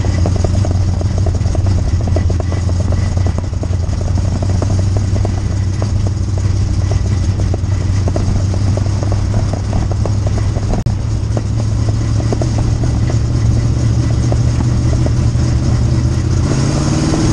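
Dirt and clods rattle against the car's body.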